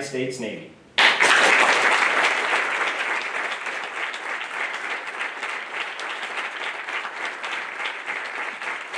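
A group of people applaud steadily.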